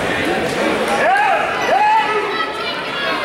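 A man shouts encouragement nearby.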